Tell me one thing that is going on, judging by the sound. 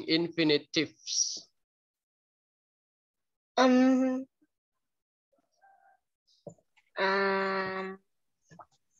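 A young child speaks and calls out in long, drawn-out notes over an online call.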